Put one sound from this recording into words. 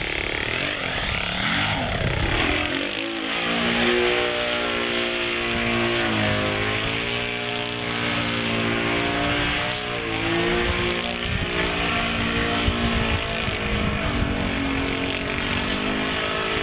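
A model plane's engine whines overhead, its pitch rising and falling as it loops and dives.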